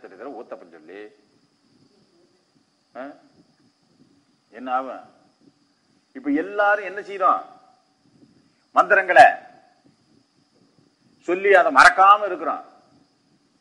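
A man speaks calmly in short phrases with pauses, close to a microphone.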